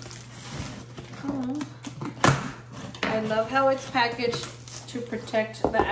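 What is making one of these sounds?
Cardboard flaps rustle and creak as a box is opened.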